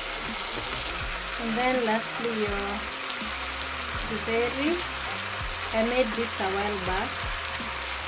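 A spoon scrapes food from a metal tray into a pot.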